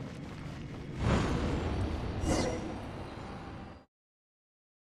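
A magical portal whooshes and swirls loudly.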